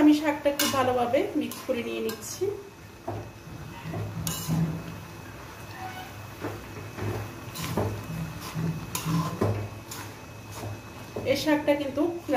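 A metal spoon scrapes and clatters against a pan.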